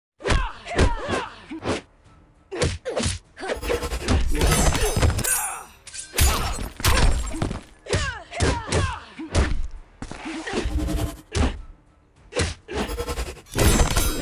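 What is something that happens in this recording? Punches and kicks land with sharp, heavy thuds, again and again.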